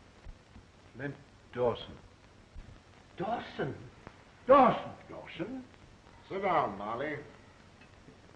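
A middle-aged man speaks firmly and sternly.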